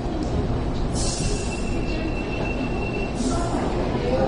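Train doors beep as they open.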